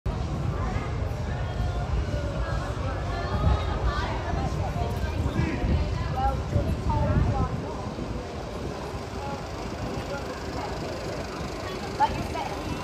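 Young women chat and laugh together nearby, outdoors.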